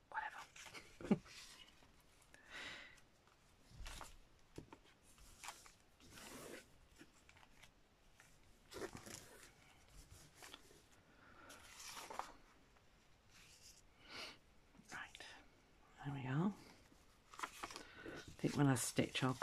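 Paper and fabric rustle and slide under hands.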